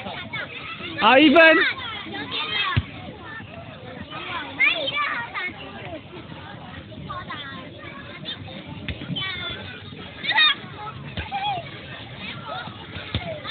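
Young children shout and squeal with excitement close by.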